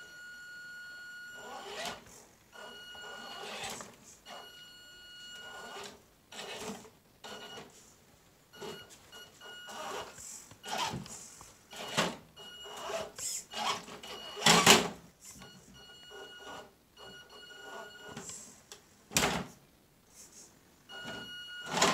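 A small electric motor whines in bursts as a toy truck crawls over rocks.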